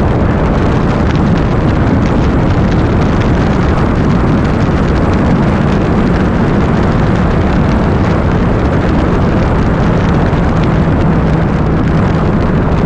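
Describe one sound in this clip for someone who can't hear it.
A motorcycle engine hums steadily at cruising speed.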